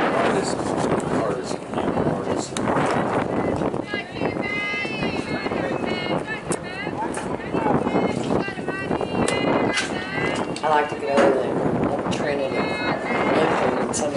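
Young women shout and chant from across an open field.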